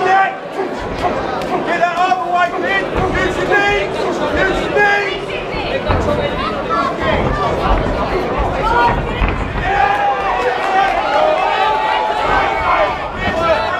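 A crowd of men and women shouts and cheers loudly in an echoing hall.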